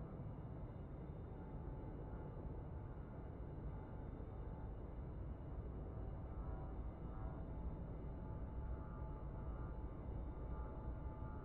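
A jet engine roars steadily with a low rumble.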